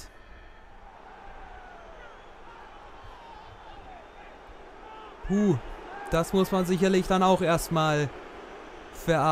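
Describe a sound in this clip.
A large crowd cheers and chants in a stadium.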